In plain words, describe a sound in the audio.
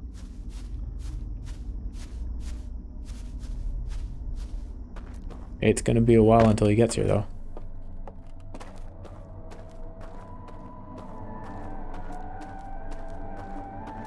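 Footsteps tread steadily over the ground.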